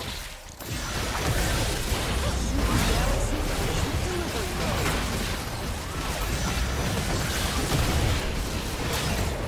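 Fantasy battle game spell effects crackle, whoosh and blast in a fight.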